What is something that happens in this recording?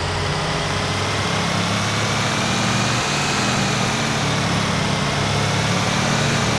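A heavy truck engine drones steadily as it drives along a road.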